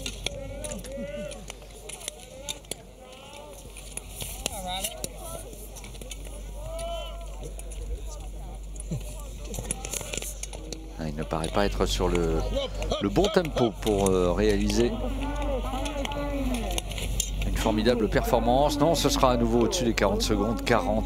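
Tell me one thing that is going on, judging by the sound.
Skate blades scrape rhythmically across ice.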